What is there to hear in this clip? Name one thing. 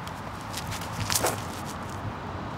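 A disc whooshes as a man throws it hard.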